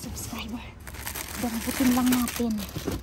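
Plastic packets and cardboard rustle and crinkle as a hand digs through them.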